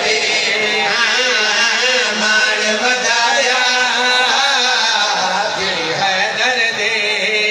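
A man sings loudly into a microphone through loudspeakers.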